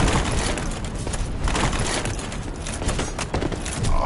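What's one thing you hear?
A metal weapon strikes hard against armor.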